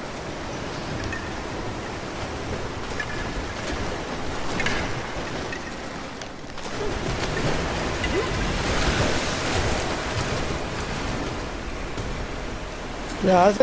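Water splashes and sloshes as a swimmer paddles through it.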